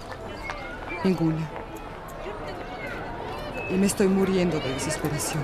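A young woman speaks calmly and seriously, close by.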